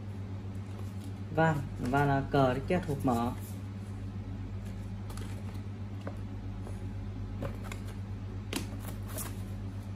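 Paper sheets rustle as hands unfold them.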